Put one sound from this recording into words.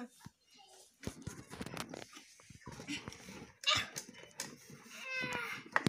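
Toys rustle and knock as they are handled.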